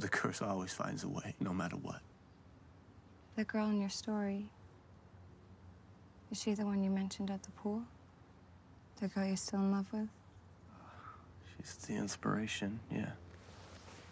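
A young man speaks softly, close by.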